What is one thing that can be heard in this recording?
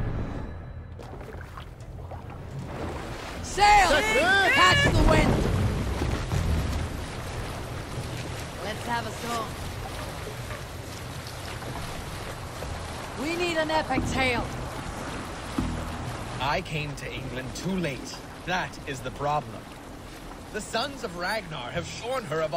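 Water splashes against a wooden boat's hull.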